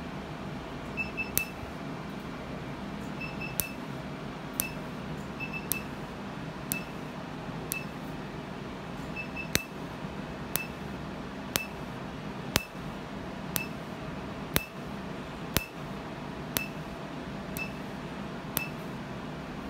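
An electric device gives short high beeps.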